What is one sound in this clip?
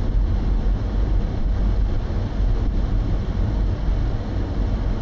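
Tyres roll steadily on an asphalt road from inside a moving car.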